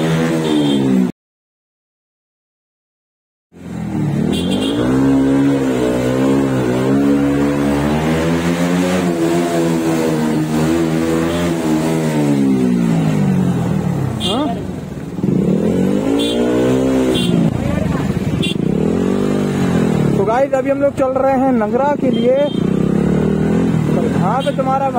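A motorcycle engine hums close by, rising and falling as it speeds up and slows down.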